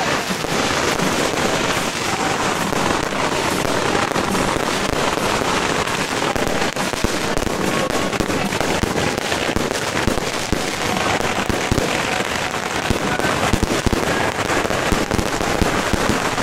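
Firecrackers crackle rapidly and continuously outdoors.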